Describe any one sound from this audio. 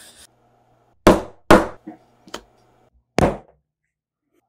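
A metal punch is hammered through leather with sharp knocks.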